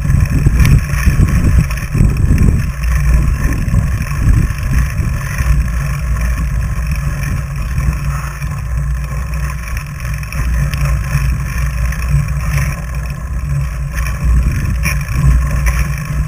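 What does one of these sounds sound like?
Fat bike tyres crunch over packed snow.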